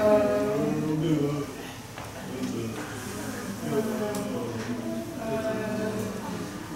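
A woman sings loudly and expressively nearby.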